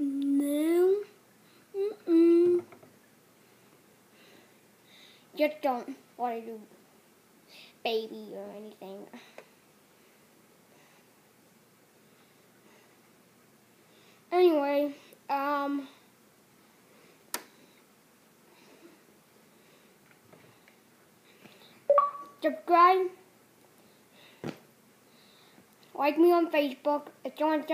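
A young child talks close to the microphone, in short bursts with pauses.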